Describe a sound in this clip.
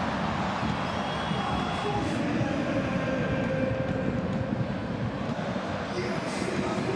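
A large stadium crowd roars and chants steadily in a wide open space.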